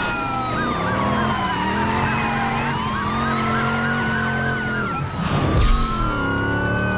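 A police siren wails and yelps close by.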